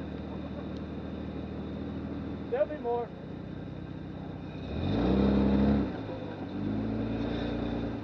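A vehicle engine idles with a low rumble nearby.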